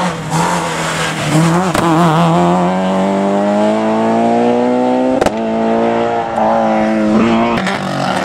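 A rally car engine roars loudly and revs as it accelerates away.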